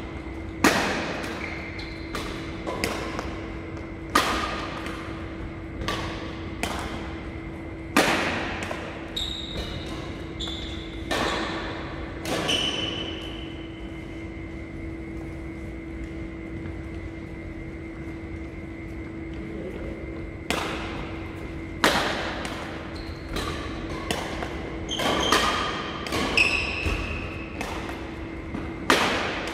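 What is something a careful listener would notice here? Rackets smack shuttlecocks with sharp echoing cracks in a large hall.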